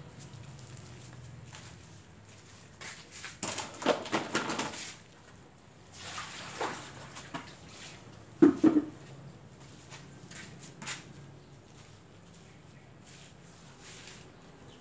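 Hands dig and press into loose potting soil.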